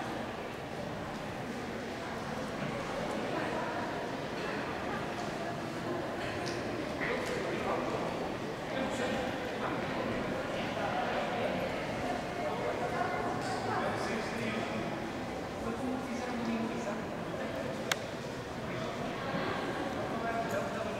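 A young woman talks at a distance.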